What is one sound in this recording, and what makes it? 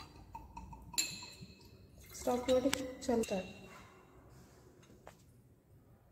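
Glass taps lightly against glass.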